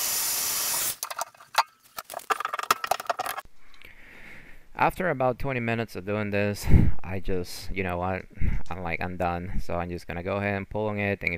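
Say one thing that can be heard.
A wrench clicks and scrapes against a metal fitting.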